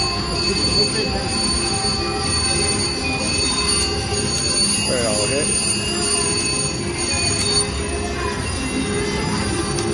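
Slot machine reels whir as they spin.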